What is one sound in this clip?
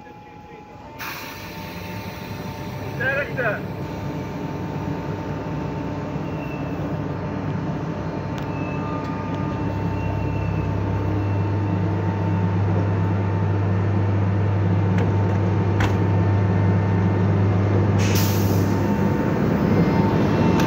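An electric locomotive hums and grows louder as it starts to pull away.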